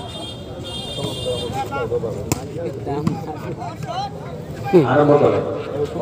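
Men on a court shout to each other.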